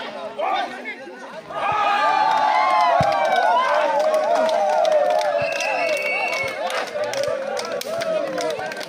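An outdoor crowd of men and women cheers and shouts loudly.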